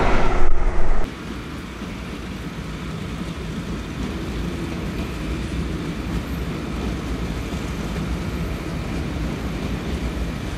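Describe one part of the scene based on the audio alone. A train rolls slowly in at a distance.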